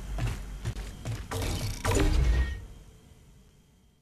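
A heavy metal door slides open.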